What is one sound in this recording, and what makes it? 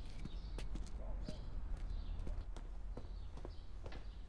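A young woman walks with light footsteps across a hard floor.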